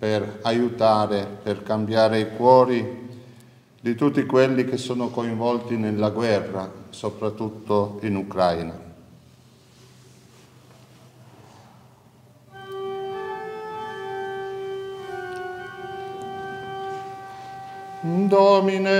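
A man chants a prayer aloud in an echoing stone hall.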